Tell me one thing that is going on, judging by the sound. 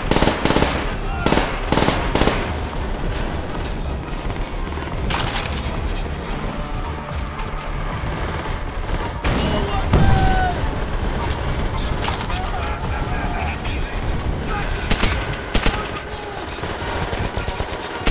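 Gunshots crack and echo in bursts.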